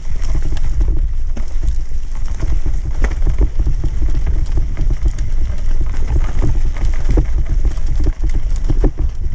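Wind rumbles loudly across a microphone.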